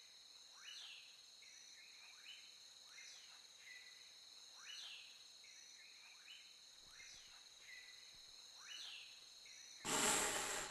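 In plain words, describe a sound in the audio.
A snake slithers softly through grass.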